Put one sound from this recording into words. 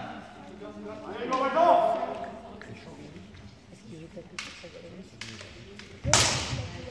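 Fighters in a large echoing hall let out loud, drawn-out shouts.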